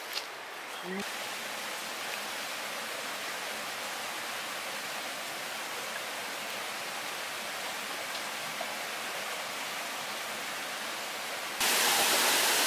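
A stream rushes and gurgles nearby.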